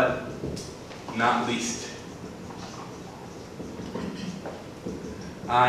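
A man speaks clearly and calmly to a class.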